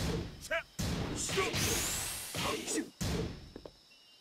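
Punches and kicks land with sharp, heavy thuds.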